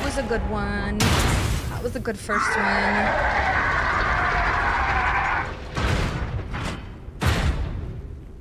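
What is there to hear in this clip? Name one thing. A huge armoured creature stomps and crashes heavily.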